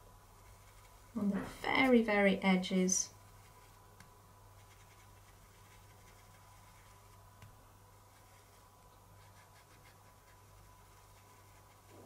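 A paintbrush dabs and scrubs softly on paper.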